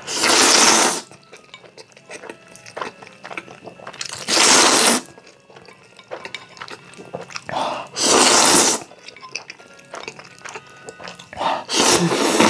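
A young man chews wetly with smacking sounds close by.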